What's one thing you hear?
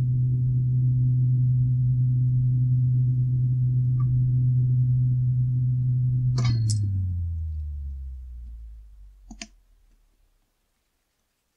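A small electric fan hums steadily, then winds down and fades away.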